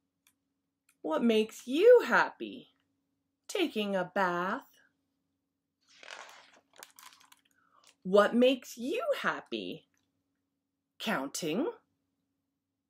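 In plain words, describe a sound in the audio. A woman reads aloud expressively, close by.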